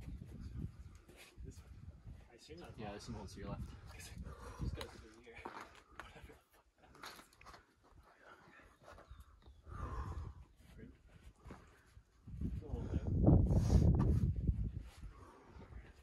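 Climbing shoes scuff and scrape against rough rock close by.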